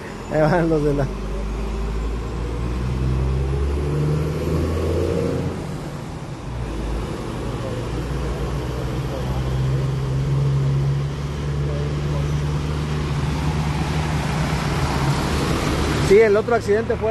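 Traffic rumbles past on a wet road.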